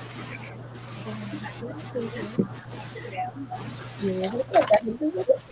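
A woman speaks calmly, heard close through a laptop microphone.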